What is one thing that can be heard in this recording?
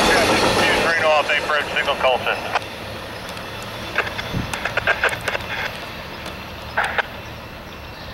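Train wheels squeal and clank on the rails as the train moves away.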